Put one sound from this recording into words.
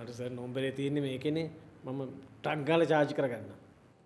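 A middle-aged man speaks close by in a tense, questioning voice.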